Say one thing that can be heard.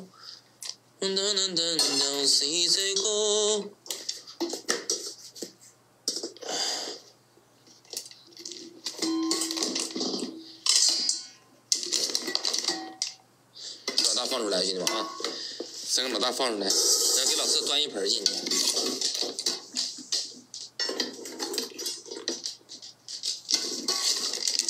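A metal bowl scrapes and scoops through dry kibble.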